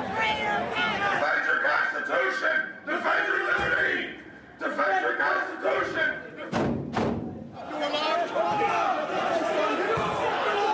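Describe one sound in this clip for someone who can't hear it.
Men shout excitedly in an echoing hallway.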